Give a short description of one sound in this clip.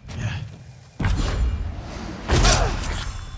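A body thuds heavily to the ground.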